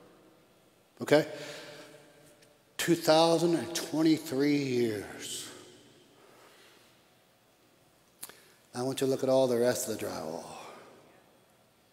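An older man preaches with animation through a microphone in a large echoing hall.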